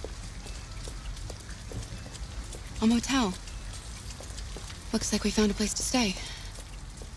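Footsteps tap slowly on wet pavement.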